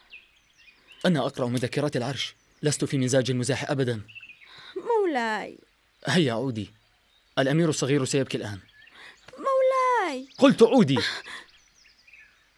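A young man speaks tensely up close.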